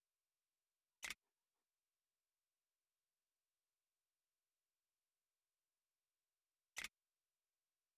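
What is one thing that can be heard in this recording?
A short menu click sounds twice.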